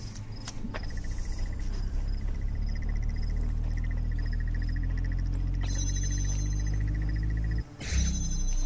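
A low electric hum swells and holds steady, then cuts off.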